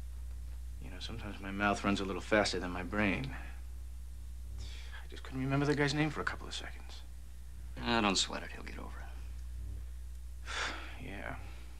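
A younger man answers quietly, close by.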